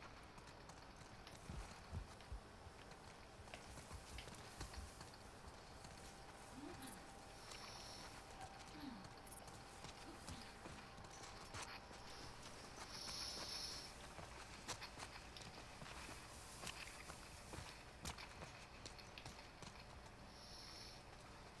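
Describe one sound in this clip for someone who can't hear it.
Footsteps patter on grass and stone.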